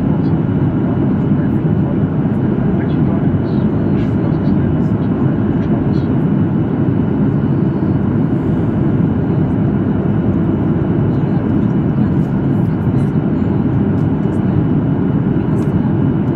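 A jet engine roars steadily from inside an airliner cabin.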